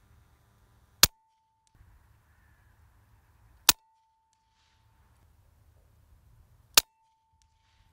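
An air rifle fires with sharp cracks.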